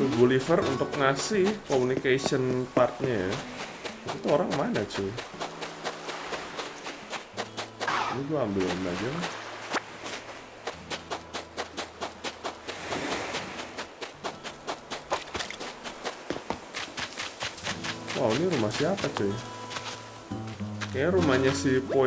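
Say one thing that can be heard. Quick footsteps patter on sand.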